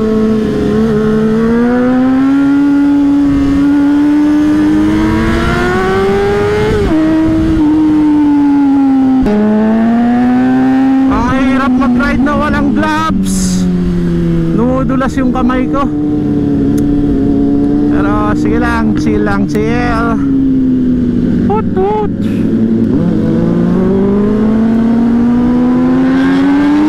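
A motorcycle engine hums and revs steadily up and down close by.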